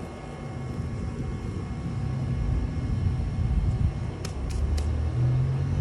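Gloved hands rustle through leafy plants.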